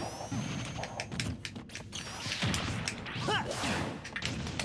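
Punches and blasts crack and thump in quick bursts.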